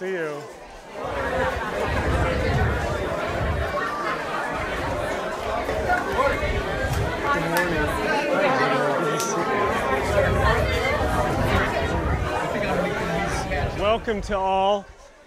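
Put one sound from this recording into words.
A crowd of men and women chatter and greet one another loudly.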